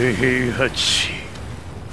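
A man speaks in an angry, low voice.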